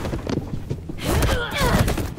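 Bodies thud and scuffle in a fight.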